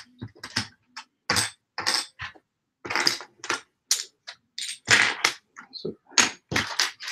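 Small metal parts click and rattle on a table.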